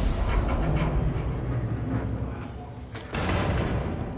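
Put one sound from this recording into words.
A heavy metal door swings open.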